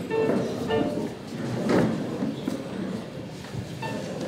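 A keyboard plays soft notes.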